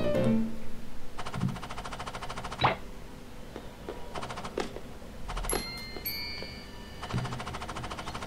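Short cartoonish sound effects pop and twinkle.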